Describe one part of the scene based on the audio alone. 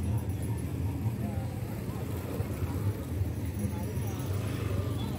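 Men and women murmur and chatter nearby.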